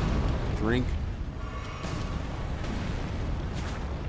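A huge axe swings through the air with a whoosh.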